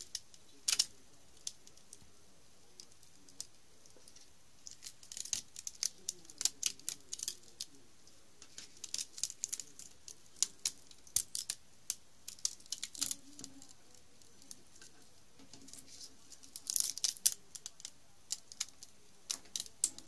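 Wire scrapes and rattles against a hard surface.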